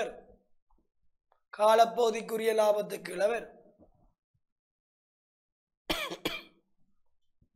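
A young man speaks clearly and with animation into a close microphone, in short bursts with pauses.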